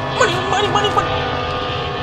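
A young man cries out in alarm close to a microphone.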